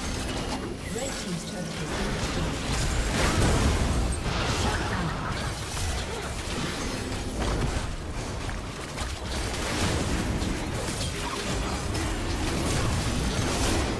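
Fantasy spell effects whoosh and burst in a busy game battle.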